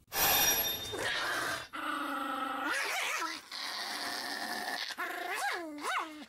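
A puppy howls and yelps in high, wavering cries close by.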